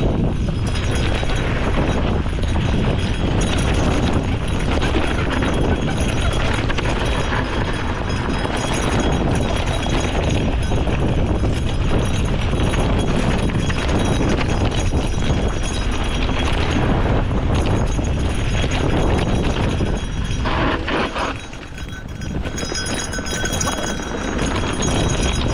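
Wind buffets loudly across the bike, outdoors.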